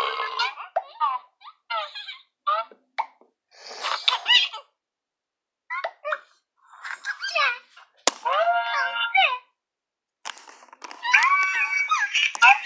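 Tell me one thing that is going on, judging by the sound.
High-pitched cartoon voices and chirpy game sounds play from small phone speakers, on and off.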